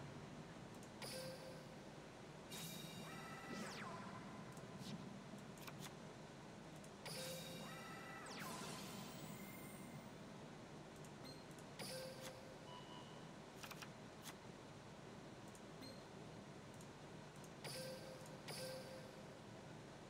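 Game sound effects chime and whoosh as cards are played.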